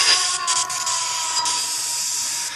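A television gives off a steady high tone.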